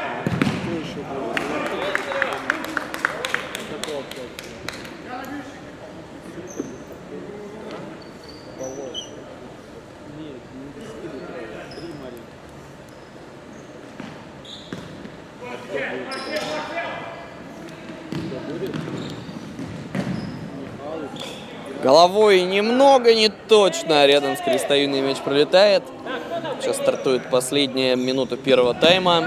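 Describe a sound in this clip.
Players' shoes squeak on a hard court in a large echoing hall.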